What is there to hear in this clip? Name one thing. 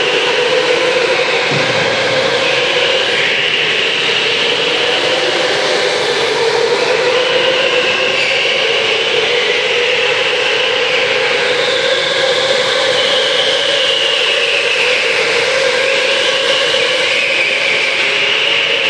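Go-kart engines whine and buzz loudly, rising and falling in pitch.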